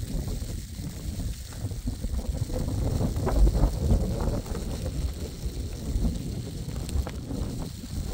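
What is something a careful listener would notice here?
Boots crunch and scrape through snow.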